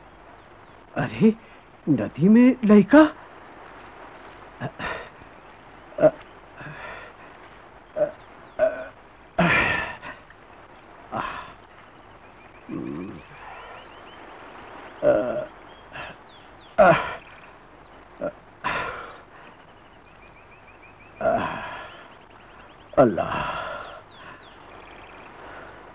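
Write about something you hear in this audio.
A man sobs and cries out in anguish close by.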